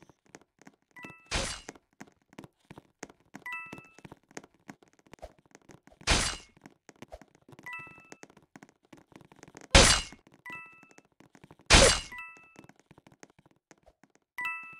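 A short bright chime rings again and again.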